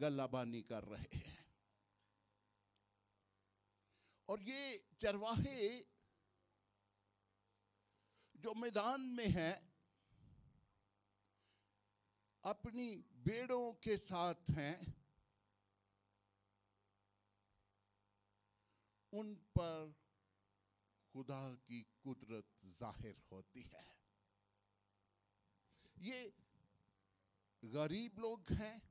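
A middle-aged man preaches with animation into a microphone, in short bursts with pauses.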